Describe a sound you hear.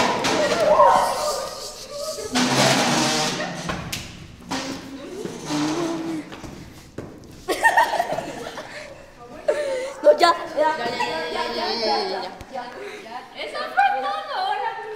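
Young people shout and talk excitedly close by.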